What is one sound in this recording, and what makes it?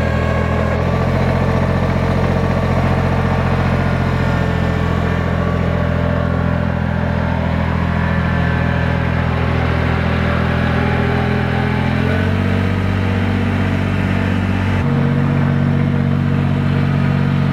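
A tractor engine idles steadily nearby.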